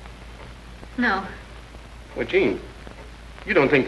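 A man speaks quietly.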